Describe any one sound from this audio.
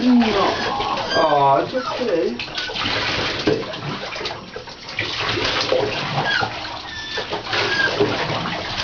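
Water splashes and sloshes in a bathtub.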